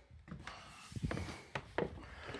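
A metal door latch clicks.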